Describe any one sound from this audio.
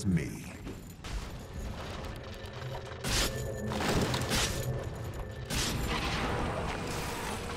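Battle sound effects clash and burst with magic whooshes.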